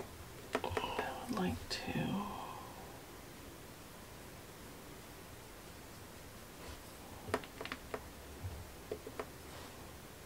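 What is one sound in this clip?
A paintbrush clicks and taps against a paint tray.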